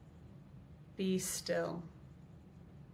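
A young woman says a few words briefly, close to the microphone.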